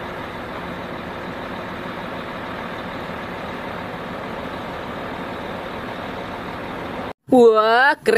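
A truck engine rumbles steadily nearby.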